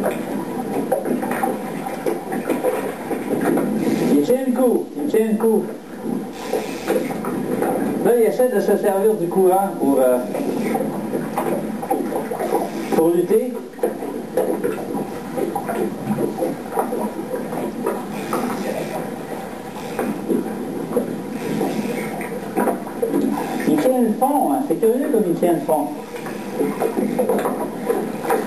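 A river rushes and gurgles nearby.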